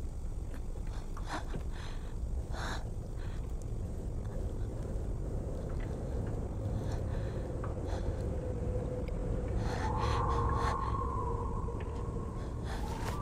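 A boy breathes softly and unevenly.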